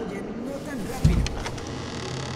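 A wooden door thumps as it is pushed open.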